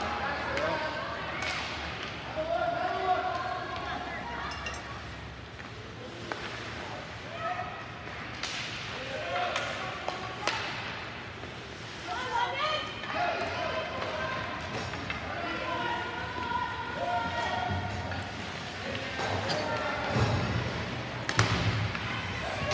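A crowd of spectators chatters and shouts in an echoing arena.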